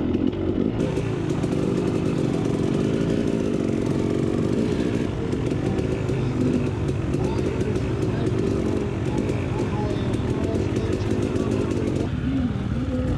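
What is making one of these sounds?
Other motorcycle engines rumble nearby.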